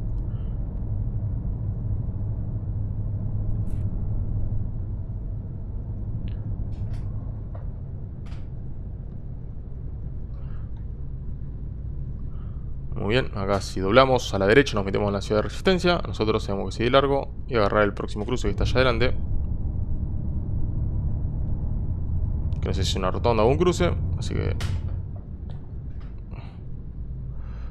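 A bus engine hums steadily with a low drone.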